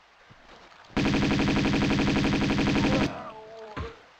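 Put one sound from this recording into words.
Pistols fire in a rapid burst of shots.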